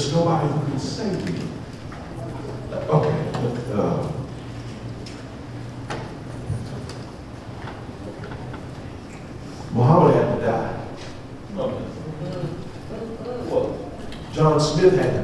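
A man speaks with animation into a microphone, heard through loudspeakers in a large room.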